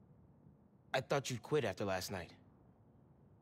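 A young man asks a question with surprise.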